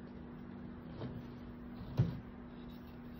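A metal colander knocks against a metal bowl.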